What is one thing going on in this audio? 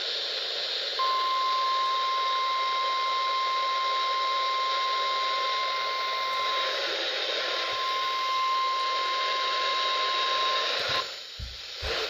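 A steady high alert tone beeps from a small radio speaker.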